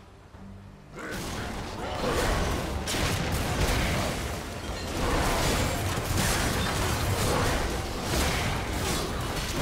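Video game battle sounds clash and boom with magical blasts.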